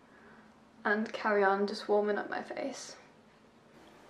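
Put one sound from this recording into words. A young woman speaks calmly close to a microphone.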